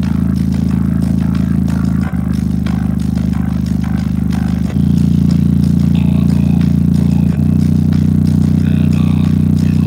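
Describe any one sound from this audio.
A loudspeaker plays a loud, deep droning bass tone that changes pitch every few seconds.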